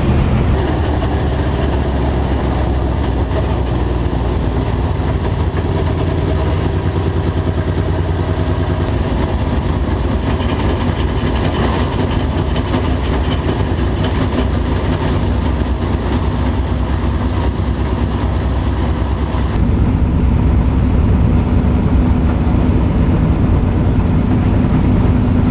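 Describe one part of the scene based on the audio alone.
A race car engine roars loudly up close.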